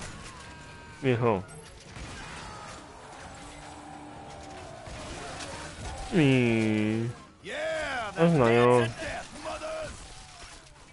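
A man talks and exclaims loudly into a close microphone.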